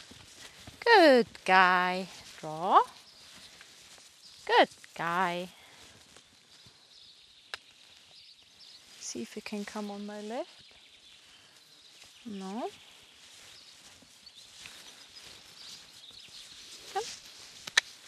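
A horse's hooves thud softly on sand.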